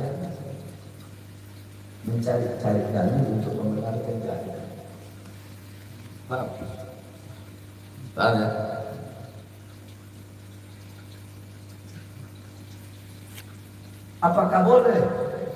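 A man speaks through a microphone in a calm, measured voice, with pauses.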